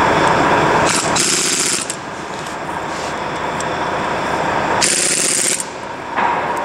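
A pneumatic impact wrench whirs in short bursts.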